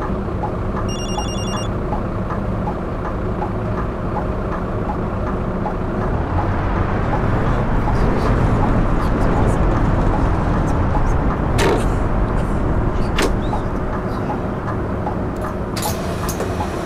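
A bus engine rumbles steadily, rising as it pulls along.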